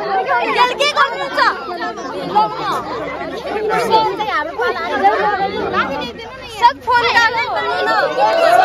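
Young women chatter and laugh close by.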